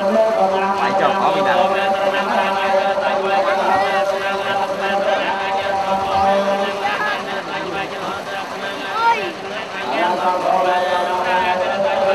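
Water splashes as it is poured over people's heads.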